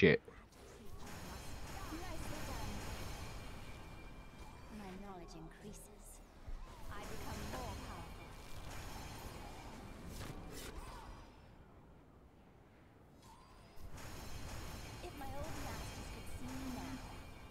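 Game effects whoosh and chime as a character levels up.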